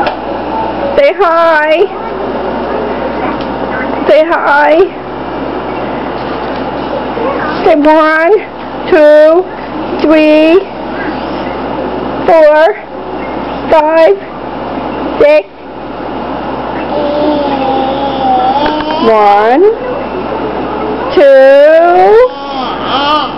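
A baby squeals and babbles loudly, close by, in short bursts.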